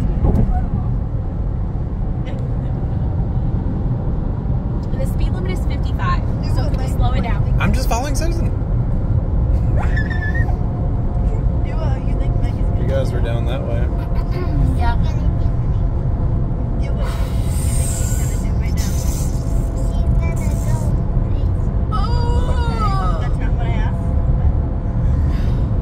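A car engine and tyres rumble steadily from inside the car.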